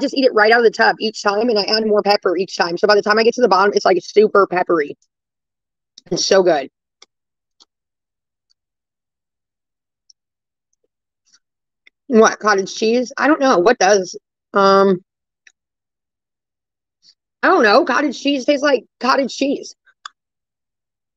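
A woman speaks with animation over an online call, in bursts with pauses.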